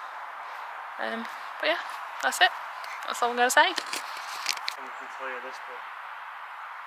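A young woman speaks calmly and close by, outdoors.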